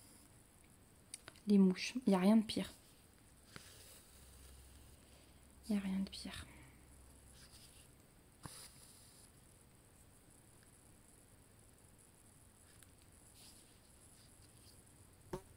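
Thread rasps softly as a needle pulls it through cloth.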